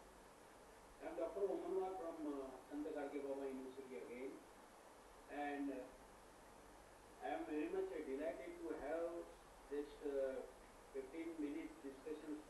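A middle-aged man speaks calmly, heard through an online call.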